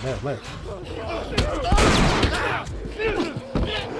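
A club strikes a body with heavy thuds.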